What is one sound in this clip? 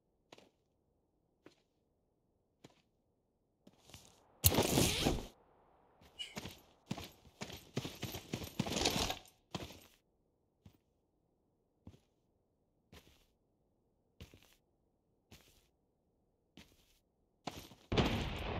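Footsteps thud on hard ground at a steady pace.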